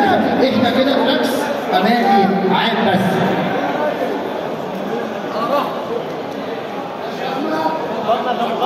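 A man announces into a microphone, heard through a loudspeaker.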